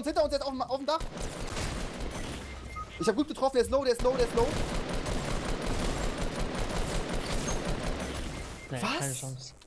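Video game gunfire rattles.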